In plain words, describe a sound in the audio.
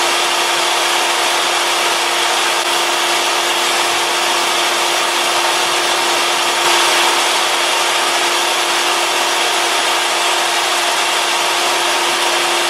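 A table saw motor whines steadily.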